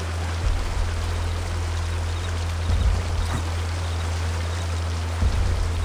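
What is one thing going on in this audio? Hands and boots scuff and thump against rock during a climb.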